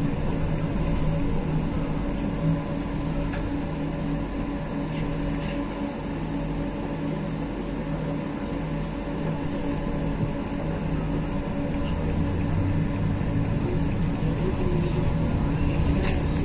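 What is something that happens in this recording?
A vehicle's motor hums and rumbles steadily, heard from inside.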